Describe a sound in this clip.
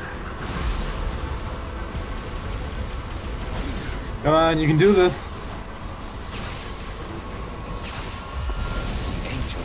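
Electric bolts crackle and hiss.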